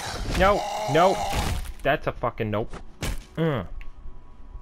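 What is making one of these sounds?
A heavy club thuds against a body.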